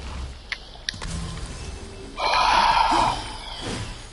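A sparkling magical burst whooshes and crackles.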